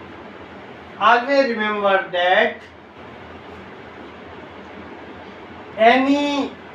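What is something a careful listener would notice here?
A man speaks in an explaining tone, close by, with short pauses.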